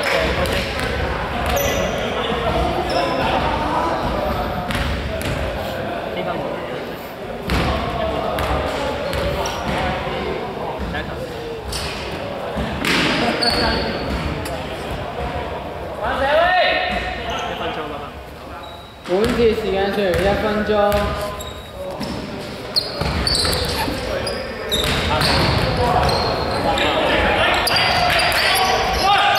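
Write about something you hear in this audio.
A basketball bounces on the court.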